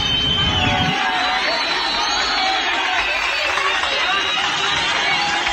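Small waves lap gently against a pebbly shore.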